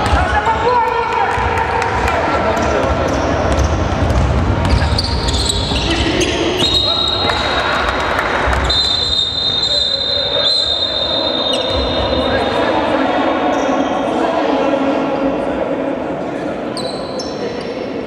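Spectators murmur and call out in a large echoing hall.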